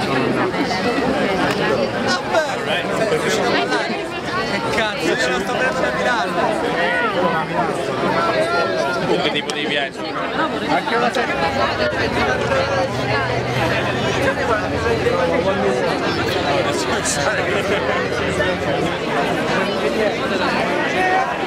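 A large crowd chatters and calls out all around, outdoors.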